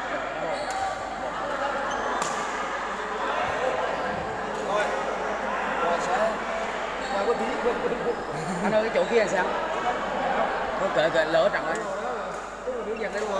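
A crowd murmurs and chatters in a large echoing hall.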